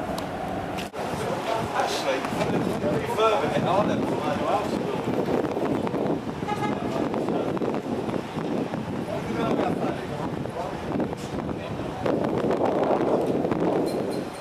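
Several men talk at once close by.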